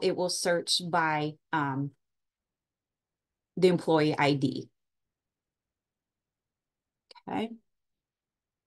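A woman speaks calmly through a microphone on an online call.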